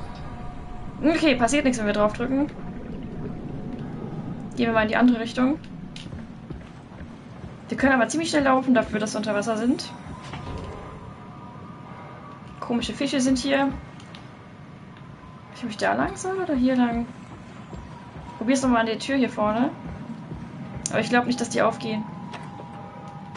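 A young woman speaks into a microphone in short bursts with pauses.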